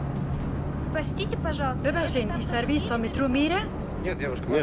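A young woman asks a question up close.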